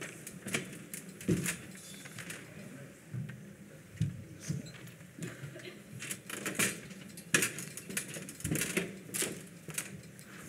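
Footsteps thud on steps and a wooden stage.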